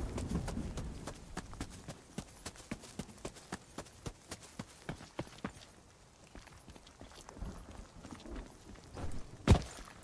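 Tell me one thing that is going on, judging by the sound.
Footsteps swish and rustle through tall grass at a steady walking pace.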